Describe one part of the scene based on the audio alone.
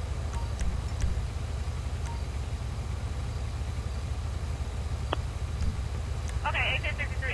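A quad bike engine idles with a low rumble.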